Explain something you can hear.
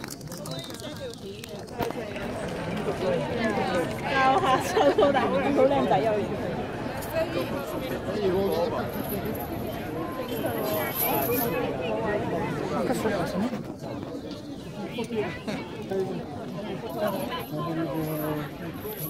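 A man speaks loudly and clearly outdoors to a crowd.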